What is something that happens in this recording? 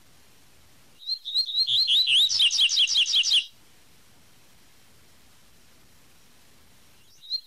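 A small songbird sings a fast, whistling song of quick repeated notes.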